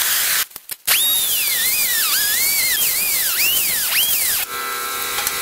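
A small grinder whines, its pitch rising and falling.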